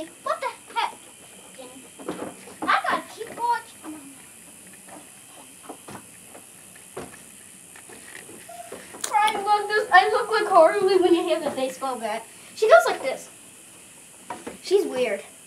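A young girl talks and calls out.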